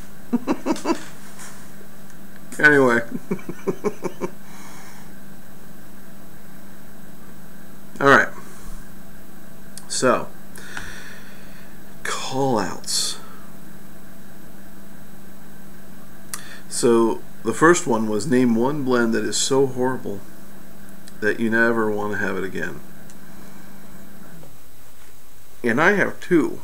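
A middle-aged man talks calmly close to the microphone, in short bursts.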